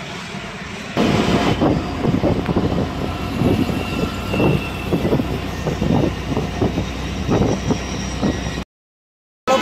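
Traffic rumbles past outdoors.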